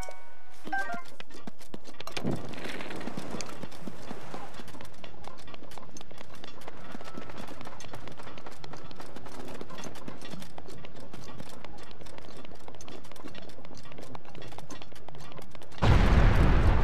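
Footsteps crunch quickly over rocky ground.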